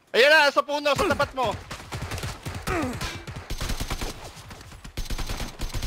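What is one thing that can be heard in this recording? Gunshots crack in rapid bursts nearby.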